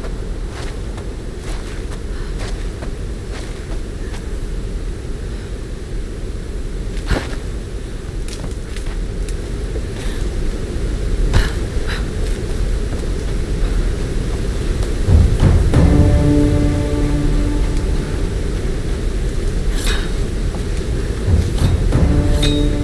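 Water rushes steadily from a waterfall.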